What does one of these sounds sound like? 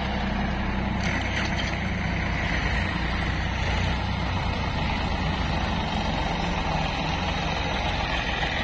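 A tractor's diesel engine chugs loudly close by.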